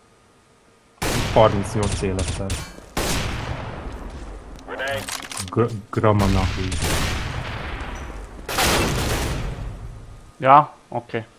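Rapid bursts of gunfire ring out in an echoing space.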